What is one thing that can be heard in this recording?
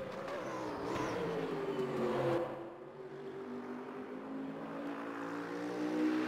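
A race car engine roars, its pitch falling as it slows and then rising as it speeds up again.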